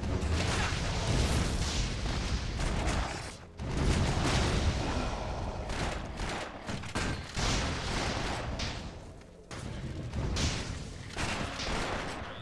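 Weapons slash and strike monsters in rapid, heavy blows.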